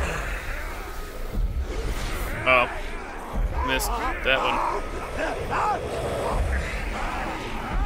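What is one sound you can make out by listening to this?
Swords swish and clang in a fight.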